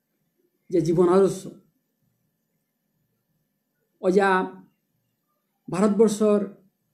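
A man speaks close by in short, emphatic phrases with pauses between them.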